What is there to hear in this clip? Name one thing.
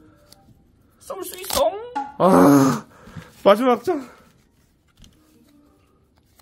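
Paper tickets rip as they are torn open by hand.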